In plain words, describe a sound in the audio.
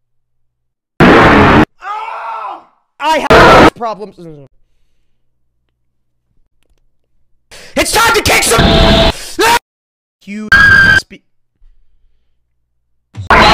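A young man shouts with animation into a close microphone.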